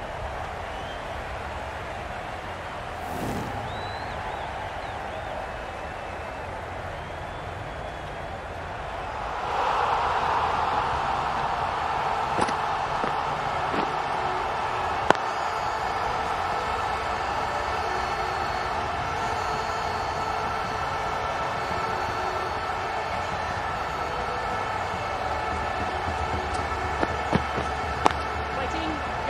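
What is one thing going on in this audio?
A large crowd cheers steadily in a stadium, growing louder partway through.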